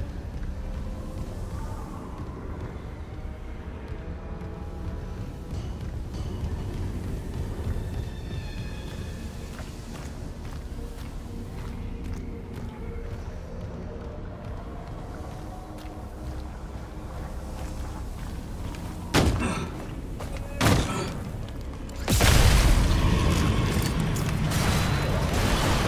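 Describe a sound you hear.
Heavy boots clank on a metal floor.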